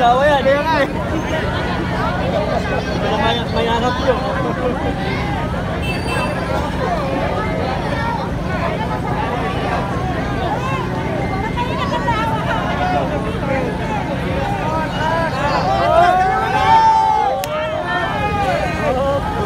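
A vehicle engine idles nearby.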